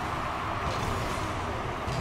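A game car's rocket boost roars.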